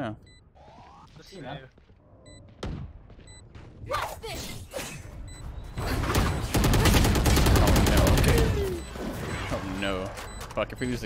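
A young man talks through a microphone with animation.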